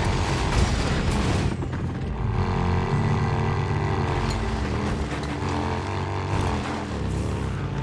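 A motorcycle engine rumbles steadily as it rides along.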